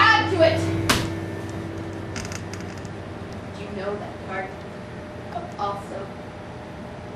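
A young woman speaks with animation, heard from a distance in a room with some echo.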